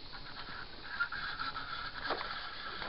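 A fish splashes at the surface of the water.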